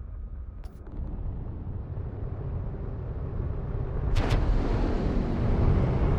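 A spaceship engine roars with a low rumble that grows louder.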